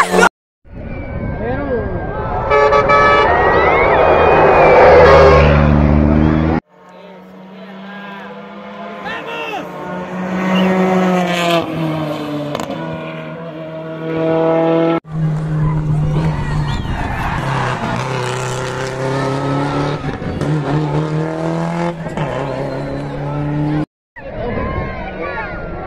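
A rally car engine roars at high revs as the car speeds past.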